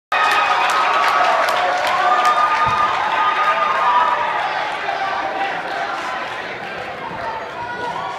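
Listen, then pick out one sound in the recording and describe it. A string band plays an upbeat tune in a large hall.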